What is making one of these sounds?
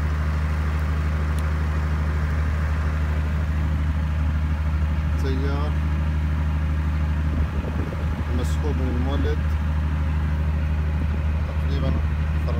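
An electric motor drive hums steadily with a low, even drone.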